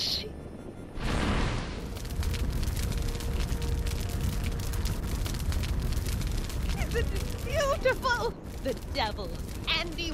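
A fire flares up with a whoosh and roars steadily.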